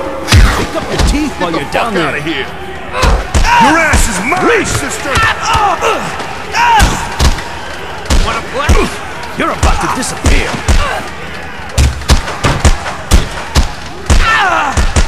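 Punches and kicks land with heavy thuds in a fast, brawling fight.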